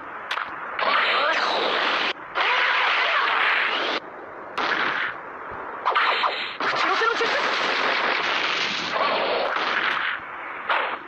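A loud energy blast whooshes and roars.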